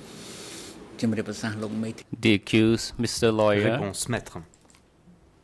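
An elderly man speaks into a microphone in a slow, firm voice.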